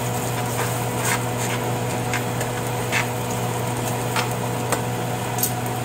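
Metal tongs scrape and clack against a pan.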